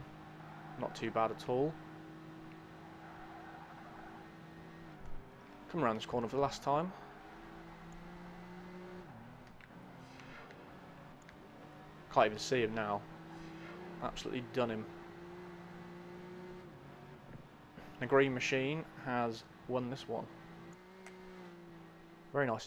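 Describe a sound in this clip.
A sports car engine hums steadily at speed, rising and falling as gears change.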